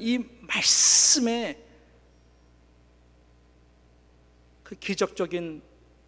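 A middle-aged man preaches passionately into a microphone.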